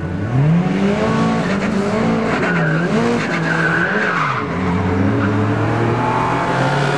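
Car engines rev loudly and roar as the cars accelerate away.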